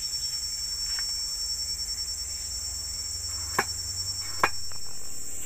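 A knife chops sharply on a wooden board.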